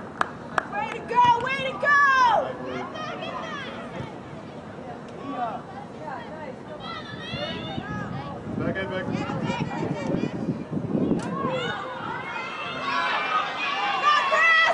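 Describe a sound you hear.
Young women shout and call out to each other across an open field.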